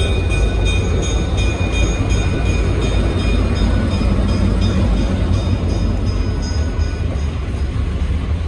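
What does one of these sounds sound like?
Wheels squeal faintly against the rails.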